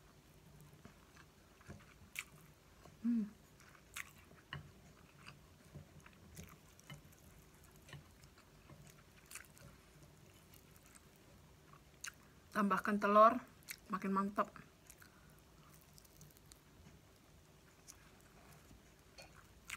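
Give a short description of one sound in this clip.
A woman chews and slurps noodles close to a microphone.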